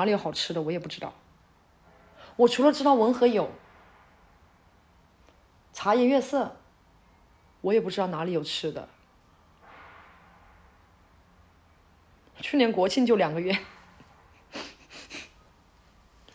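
A young woman talks close to the microphone with animation, in short bursts.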